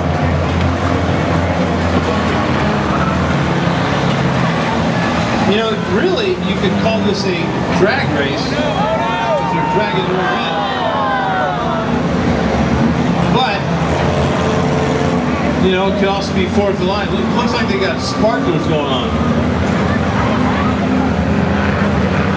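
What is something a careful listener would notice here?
Race car engines roar steadily around an outdoor track.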